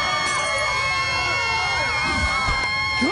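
A young child screams loudly.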